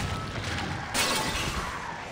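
A sword clashes against enemies.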